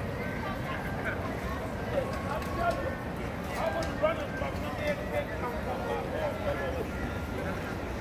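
A busy street crowd chatters around the listener outdoors.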